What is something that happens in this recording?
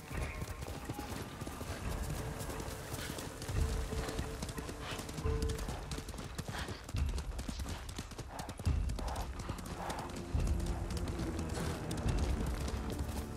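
A horse gallops with heavy thudding hoofbeats on a dirt path.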